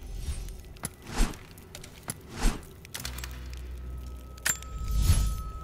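Weapons rattle and swish as they are swapped.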